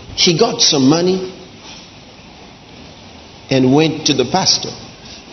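A man speaks with emphasis into a microphone.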